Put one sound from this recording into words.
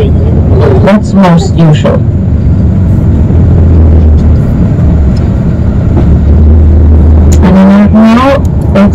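A bus engine hums low and steady from inside the bus.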